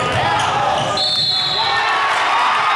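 A referee blows a short whistle blast.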